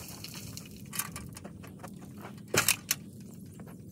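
A metal pole knocks and clanks against a wall.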